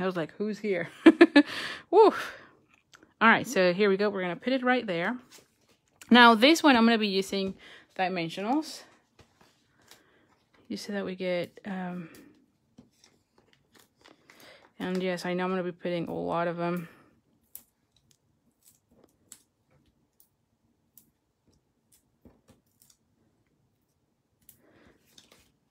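Stiff paper rustles and taps on a hard tabletop.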